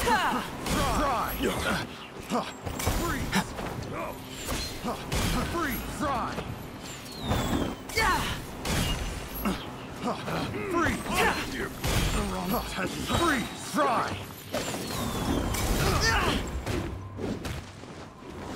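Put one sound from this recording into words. Fiery magic blasts burst with loud booms.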